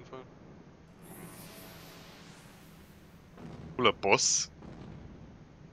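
A magical crystal hums and shimmers as it powers up.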